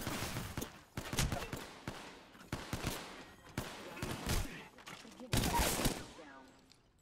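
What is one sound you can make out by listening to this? Gunshots ring out in sharp bursts.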